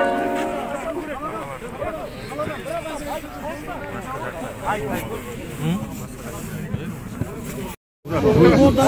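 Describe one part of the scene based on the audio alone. A crowd of men murmurs and talks at once outdoors.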